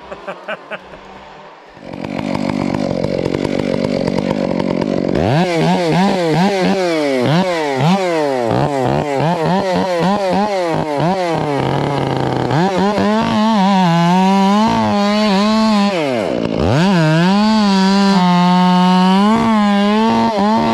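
A chainsaw engine roars close by, revving up and down repeatedly as it cuts wood.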